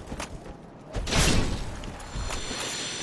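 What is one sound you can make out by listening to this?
A magical blast bursts with a deep rumble.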